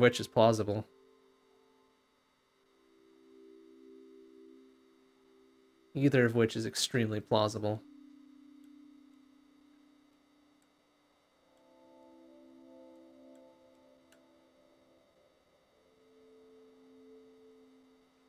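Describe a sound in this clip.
Soft synth music plays with low sustained tones.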